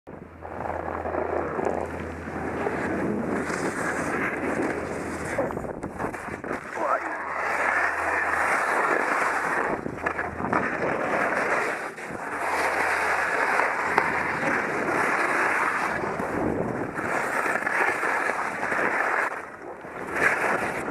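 Wind rushes past, loud and close.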